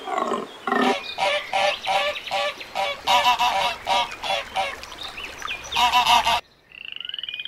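Ducklings peep rapidly.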